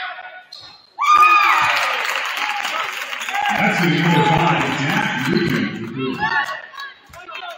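A crowd cheers loudly in an echoing gym.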